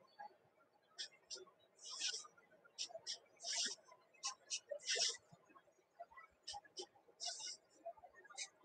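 A marker taps and squeaks in short strokes.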